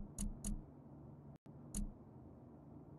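Soft electronic menu clicks sound, one after another.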